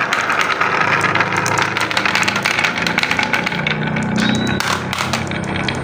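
Marbles roll and rattle along a wooden track.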